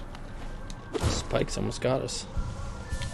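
Rocks crumble and break.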